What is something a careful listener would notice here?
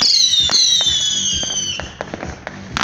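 Fireworks whistle as they shoot upward.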